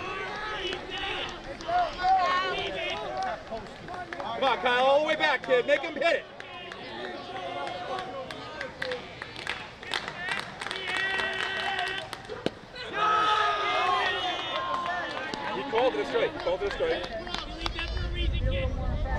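Young men shout and cheer from the sidelines outdoors.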